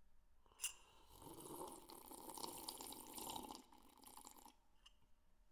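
A man slurps a drink from a cup close by.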